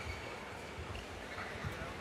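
A badminton racket strikes a shuttlecock.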